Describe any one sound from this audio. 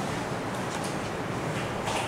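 A marker squeaks across a whiteboard.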